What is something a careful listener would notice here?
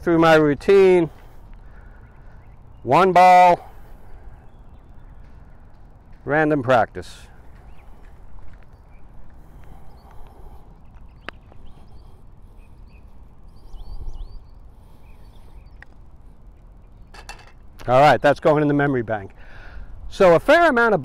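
A man speaks calmly outdoors, in short phrases.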